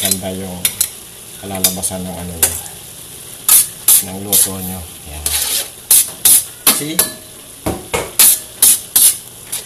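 Metal tongs clink and scrape against a pan.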